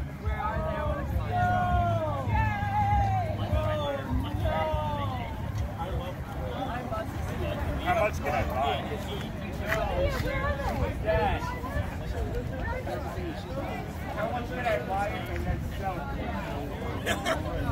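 A crowd of young people chatter and call out close by.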